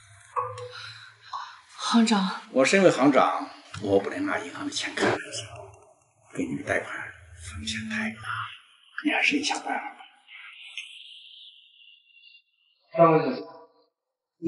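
A young woman speaks softly nearby.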